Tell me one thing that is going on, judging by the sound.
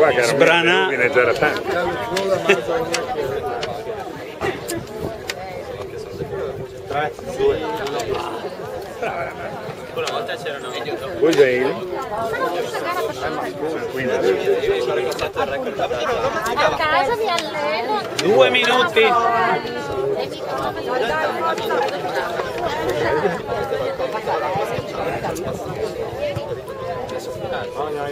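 A crowd of people chatter and call out loudly outdoors.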